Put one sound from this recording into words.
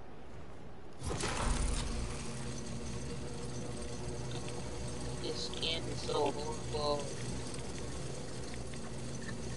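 A zipline pulley whirs steadily along a cable.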